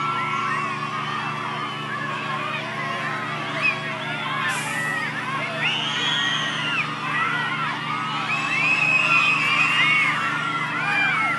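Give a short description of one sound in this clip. A fire truck's engine hums steadily nearby.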